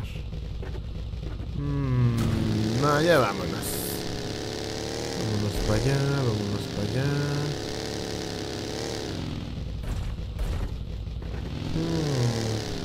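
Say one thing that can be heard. A buggy engine roars and revs up and down.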